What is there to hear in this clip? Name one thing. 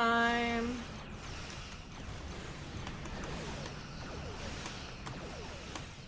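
Laser blasts and explosions from a space game crackle and boom.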